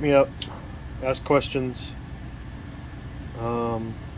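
A folding knife blade snaps open with a click.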